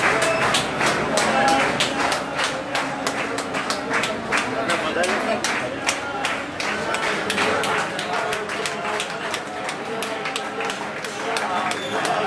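A crowd claps hands in a steady rhythm.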